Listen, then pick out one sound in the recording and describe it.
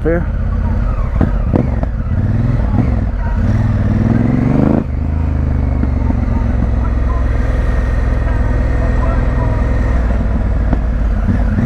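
A motorcycle engine revs up, drops and hums steadily close by.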